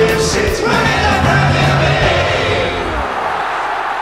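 A group of men and a woman sing loudly and cheerfully together.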